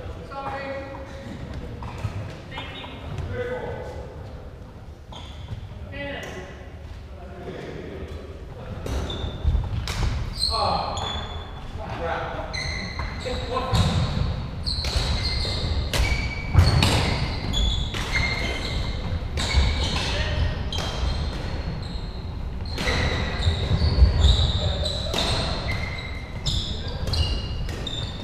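Shoes squeak sharply on a wooden court floor.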